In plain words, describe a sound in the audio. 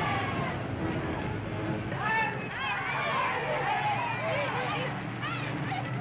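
A large crowd cheers and shouts loudly outdoors.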